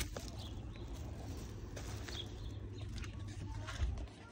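A plastic bag rustles as a package is set down.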